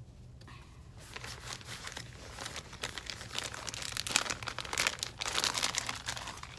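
Plastic wrapping crinkles and rustles as it is handled.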